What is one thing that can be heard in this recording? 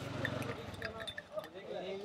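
A spoon clinks against a glass while stirring tea.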